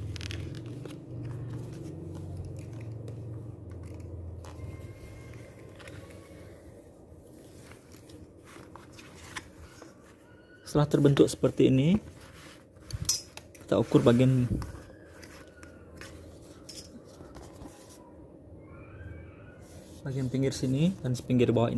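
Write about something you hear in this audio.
A stiff sheet of paper rustles and crinkles as hands handle it.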